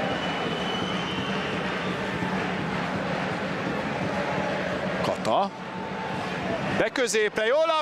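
A stadium crowd murmurs and chants in a large open space.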